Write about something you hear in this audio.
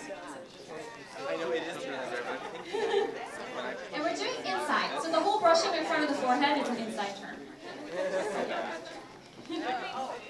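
A crowd of people chatters in a large room.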